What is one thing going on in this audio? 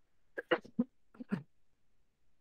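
A woman sobs and gasps close to a headset microphone.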